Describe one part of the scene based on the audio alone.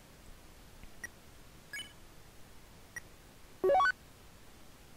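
Short electronic beeps chirp a few times.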